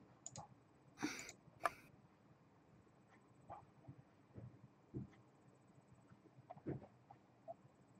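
A young boy giggles and breathes sharply close by.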